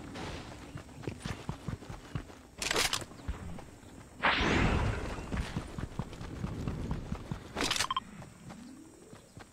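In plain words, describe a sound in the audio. Quick footsteps thud on grass and dirt.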